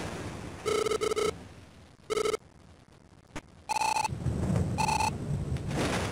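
Short electronic chimes beep in quick bursts.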